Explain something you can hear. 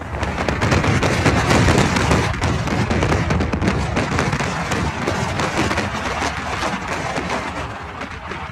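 Strong wind gusts and rumbles across the microphone outdoors.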